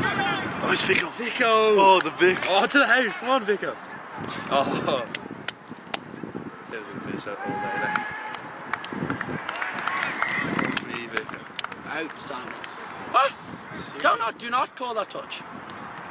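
Young players call out to each other across an open field.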